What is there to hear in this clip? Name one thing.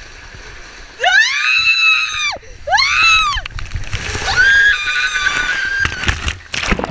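A young woman screams with delight up close.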